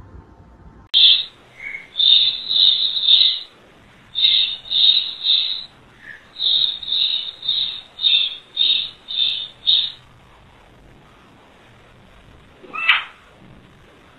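Newborn babies cry in short, high squeals.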